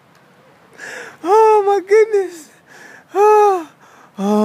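A man groans loudly.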